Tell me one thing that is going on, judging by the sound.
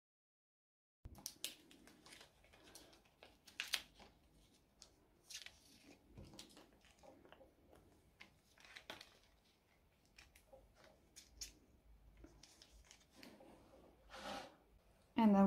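Plastic sleeves rustle and crinkle as cards are slid into them.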